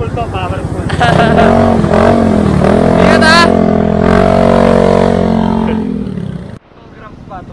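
A scooter engine idles and revs up and down.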